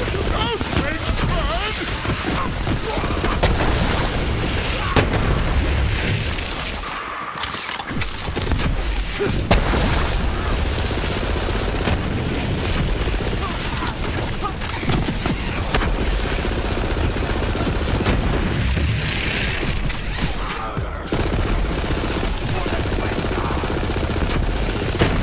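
Rapid gunfire crackles in a shooter game.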